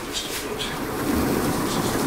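A paintbrush scratches and dabs on canvas.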